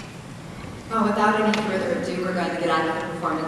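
A woman speaks warmly into a microphone in a large hall.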